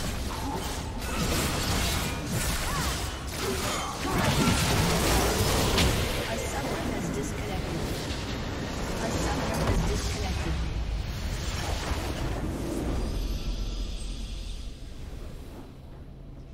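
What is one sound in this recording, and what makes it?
Spell effects crackle, whoosh and explode in a fast game battle.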